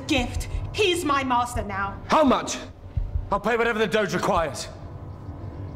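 A man speaks tensely, close by.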